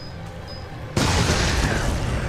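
A creature smashes through a door with a loud crash.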